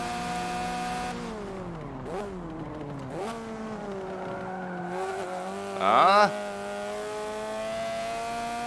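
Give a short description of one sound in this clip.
A racing car engine drones steadily, its pitch dropping as it shifts down and then climbing again.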